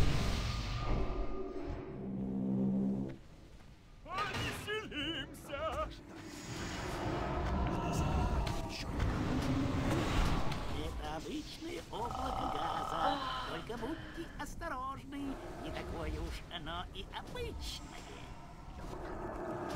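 Magic spells whoosh and burst in a noisy battle.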